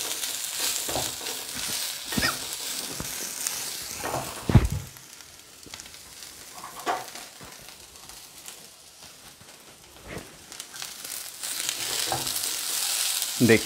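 Spatulas scrape and knock against a pan while stirring.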